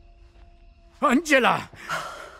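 A middle-aged man shouts loudly.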